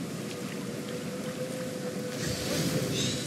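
Water splashes underfoot.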